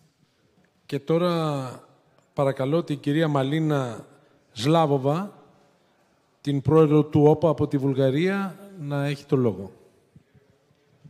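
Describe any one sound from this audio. An elderly man speaks into a microphone over loudspeakers in a large hall.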